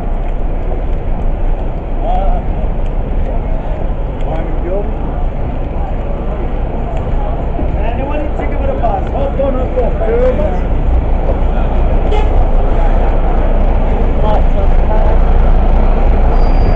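A crowd of people chatters and murmurs on a busy street.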